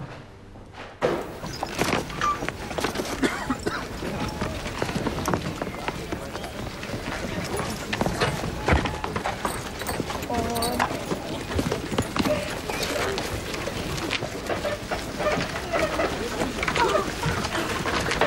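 Footsteps crunch on packed snow outdoors.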